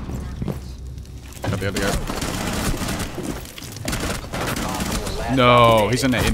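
Gunshots fire in quick bursts, with a few sharp, clicking cracks.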